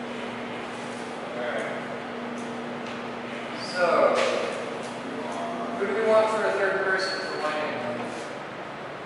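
Men talk with each other nearby.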